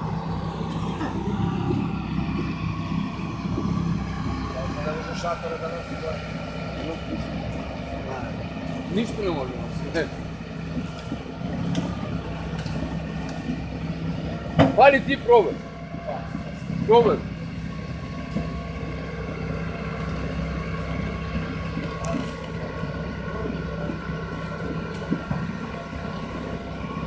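A heavy engine rumbles steadily in the distance, outdoors.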